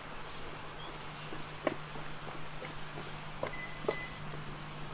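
Footsteps tap down stone steps.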